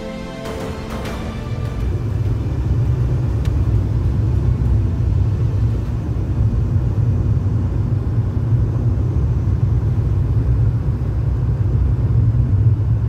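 A car's engine hums low and steady as it drives.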